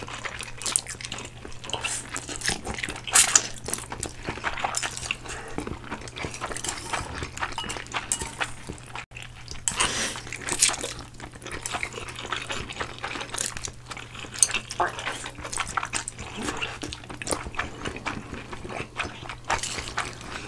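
People chew wetly and smack their lips close up.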